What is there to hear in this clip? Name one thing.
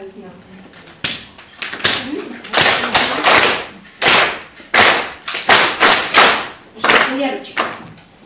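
Young children clap their hands in rhythm.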